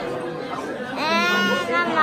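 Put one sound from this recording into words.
A young girl squeals with delight.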